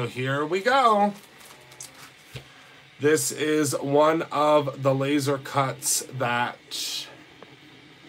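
A plastic sleeve crinkles and rustles under a hand.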